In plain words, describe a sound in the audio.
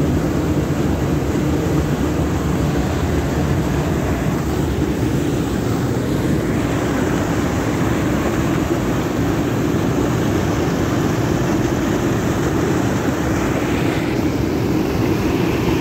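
Water roars steadily as it pours over a weir into churning foam below.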